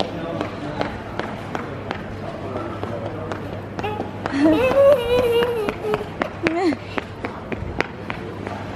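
A young girl's shoes tap on a hard floor as she walks.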